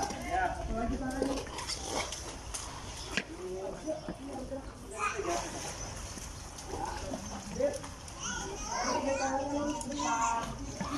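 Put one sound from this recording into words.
A young child chatters and squeals nearby.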